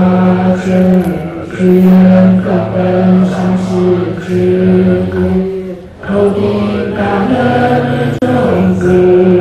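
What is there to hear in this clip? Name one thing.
An elderly man chants in a low, steady drone through a microphone.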